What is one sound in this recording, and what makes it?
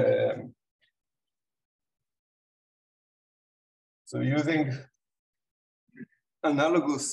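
A man speaks calmly in pauses through a microphone.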